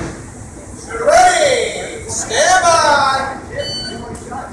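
A man speaks in a large echoing hall.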